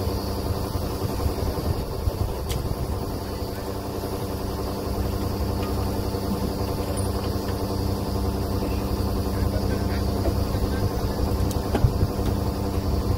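Metal clanks now and then at a drill rig.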